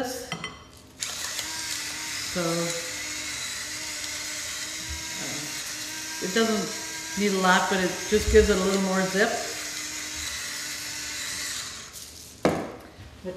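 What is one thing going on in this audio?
A hand blender whirs steadily.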